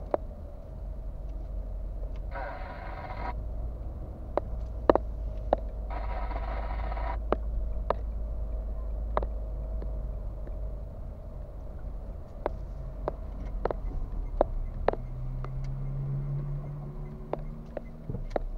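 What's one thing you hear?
A car engine hums low and steady from inside the car.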